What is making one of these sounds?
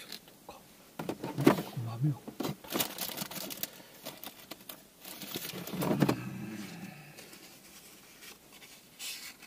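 Paper crinkles and rustles in someone's hands.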